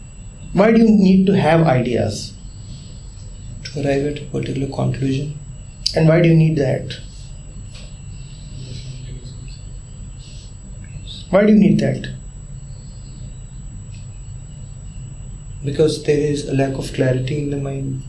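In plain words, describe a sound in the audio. A man speaks calmly through a close microphone, with long pauses.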